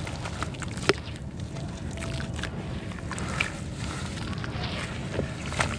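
Hands squish and knead wet mud.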